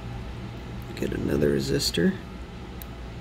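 Metal tweezers click and scrape against a small part.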